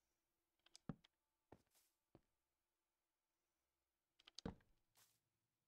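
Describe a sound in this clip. Wooden blocks thud into place with short knocks.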